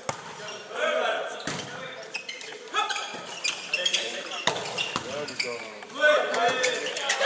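Sneakers squeak on the hall floor.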